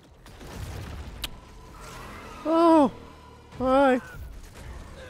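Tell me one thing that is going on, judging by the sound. A monster snarls and roars.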